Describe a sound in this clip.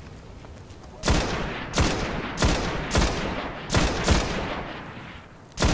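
A rifle fires single loud shots, one after another, with booming echoes.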